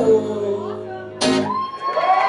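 An acoustic guitar rings out with a strummed chord.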